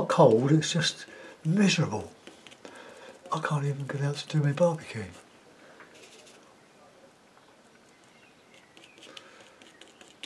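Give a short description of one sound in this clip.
A brush dabs and scrapes softly on canvas.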